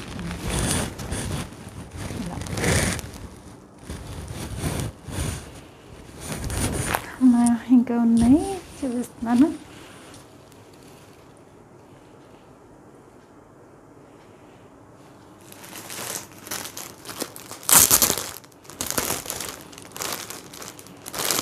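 Fabric rustles and swishes as it is handled.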